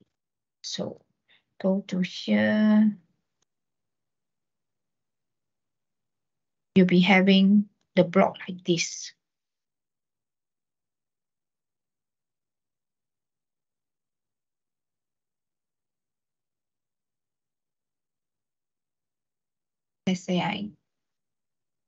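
A young man speaks calmly in short bursts over an online call.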